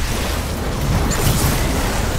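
A loud blast bursts and roars.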